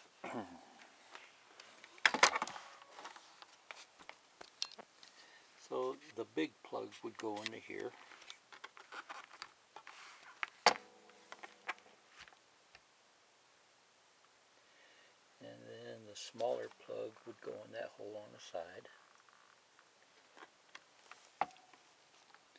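Hands bump and rub against an electric guitar, making soft knocks and scrapes.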